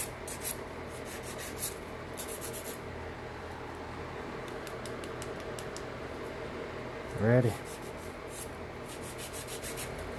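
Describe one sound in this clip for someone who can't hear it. A nail file rasps in short, quick strokes against a fingernail.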